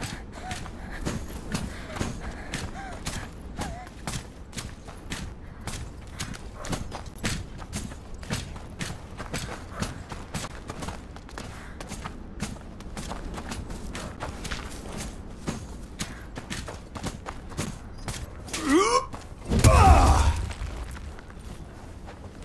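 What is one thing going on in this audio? Quick footsteps run over wet ground.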